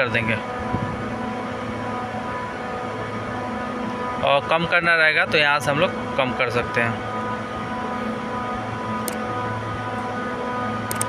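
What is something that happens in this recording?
A large machine hums steadily nearby.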